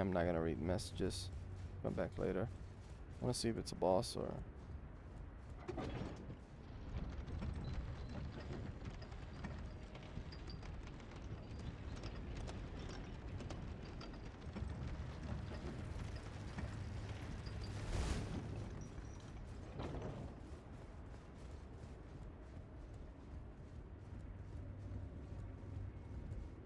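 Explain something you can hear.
Heavy footsteps thud on wooden stairs and boards.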